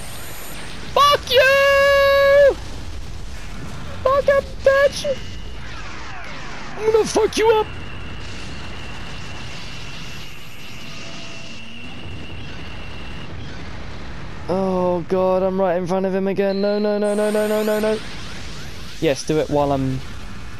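A giant monster roars loudly, again and again.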